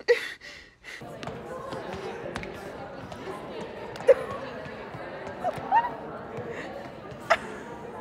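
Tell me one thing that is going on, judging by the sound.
People murmur in a large echoing hall.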